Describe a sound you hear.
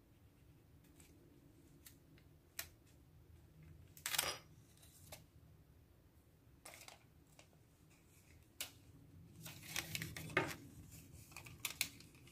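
Fingers tap and press stickers onto paper.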